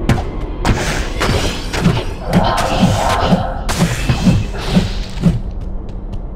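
Heavy blows thud repeatedly during a fight.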